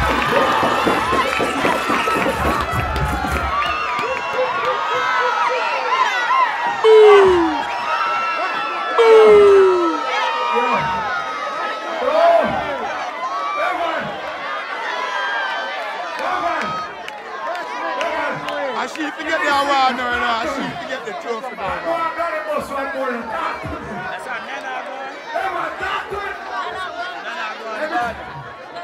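A crowd of people cheers and shouts loudly outdoors.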